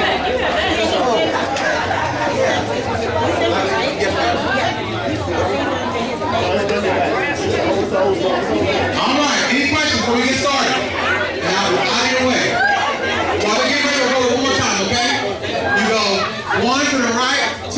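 A woman talks loudly through a microphone over a loudspeaker.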